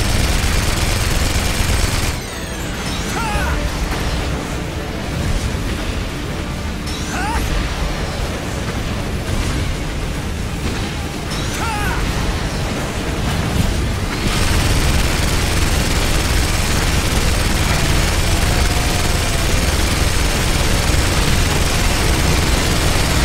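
Gatling guns fire in rapid, dense bursts.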